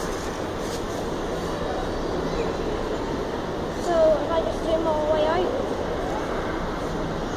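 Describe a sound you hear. Voices murmur in a large echoing hall.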